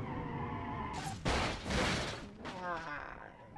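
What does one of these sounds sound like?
A car crashes hard into a wall with a loud crunch.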